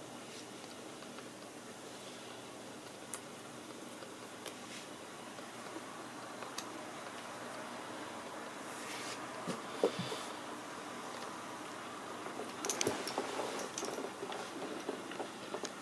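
Strung bones click and rattle against each other.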